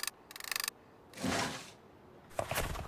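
A wooden panel slides open with a soft whoosh.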